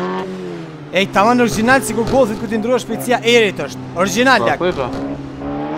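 Tyres squeal on the road.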